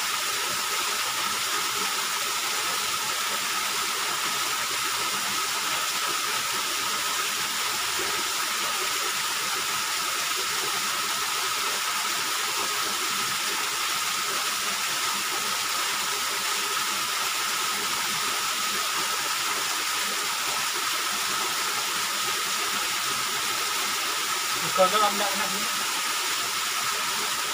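A small waterfall splashes steadily onto rocks nearby.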